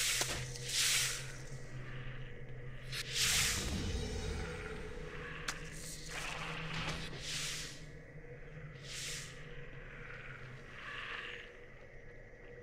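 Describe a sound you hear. Magic spells whoosh and crackle in loud bursts.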